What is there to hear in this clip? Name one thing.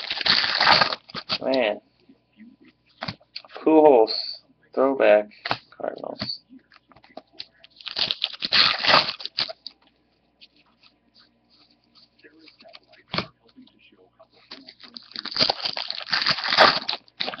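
A plastic card pack wrapper crinkles as it is torn open.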